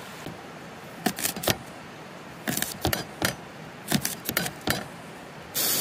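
A knife chops vegetables on a plate with sharp taps.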